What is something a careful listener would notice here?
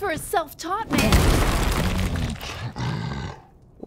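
Magic blasts burst with loud rushing whooshes.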